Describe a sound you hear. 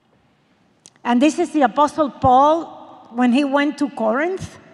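A woman speaks into a microphone, heard through a loudspeaker in a large echoing hall.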